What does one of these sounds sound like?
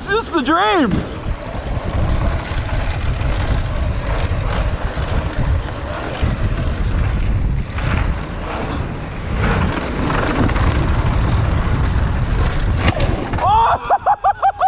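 Bike tyres rumble and crunch over loose gravel.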